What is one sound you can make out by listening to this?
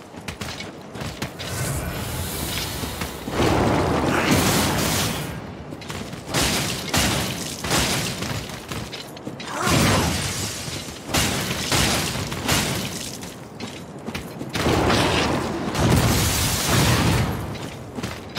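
A huge creature stomps and thrashes with heavy crashing blows.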